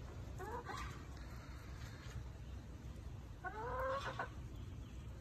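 Hens cluck and squawk nearby.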